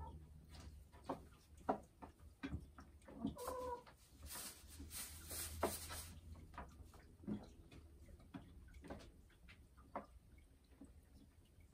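A hen clucks softly and low, close by.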